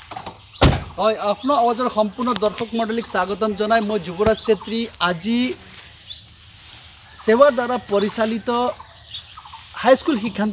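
A man speaks into a microphone close by, with animation.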